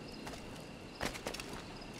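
Hands and boots knock against a stone wall during a climb.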